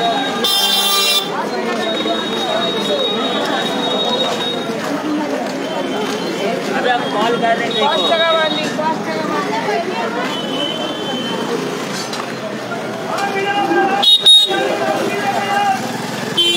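A busy crowd chatters all around in the open.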